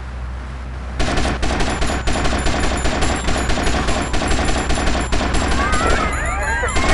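Rapid bursts of gunfire crack out close by.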